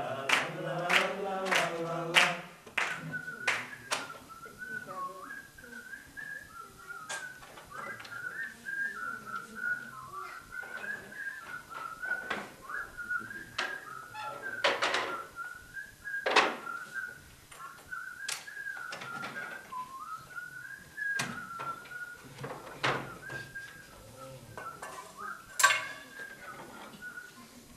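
Wooden objects knock and clatter.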